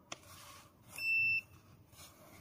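An electronic device beeps briefly.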